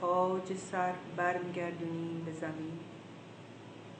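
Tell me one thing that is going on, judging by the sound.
An elderly woman chants softly and slowly through a phone microphone.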